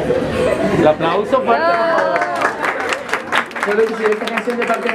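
A crowd cheers and shouts in a room.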